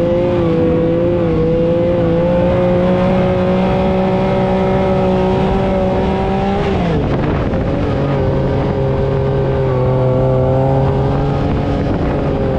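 A buggy engine roars loudly up close, dropping briefly as it shifts gear and then pulling hard again.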